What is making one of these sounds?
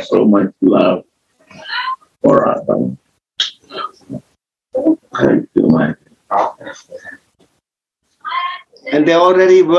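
An older man speaks calmly through a microphone on an online call.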